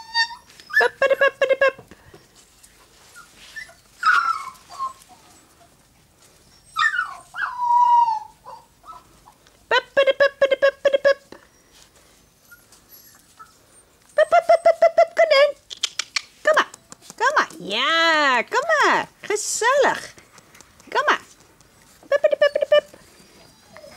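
Puppies yip and whine in short, high bursts.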